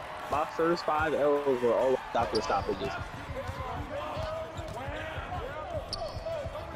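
A basketball bounces steadily on a court.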